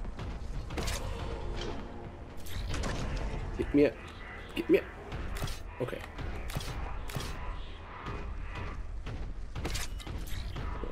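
A shotgun fires in sharp, repeated blasts.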